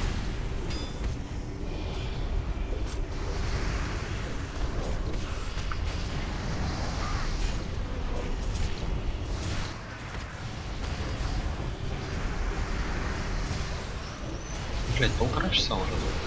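Magic spells crackle and whoosh amid a noisy battle.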